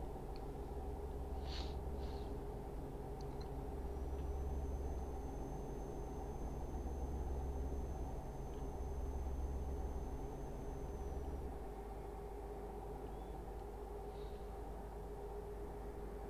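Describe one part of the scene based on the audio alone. A truck engine hums steadily while driving on a highway.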